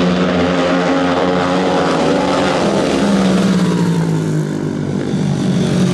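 Motorcycle engines roar loudly as they race around a track.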